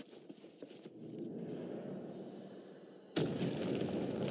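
A low rumbling drone swells in a large echoing space.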